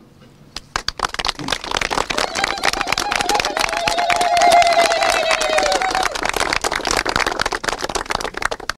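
A crowd claps steadily.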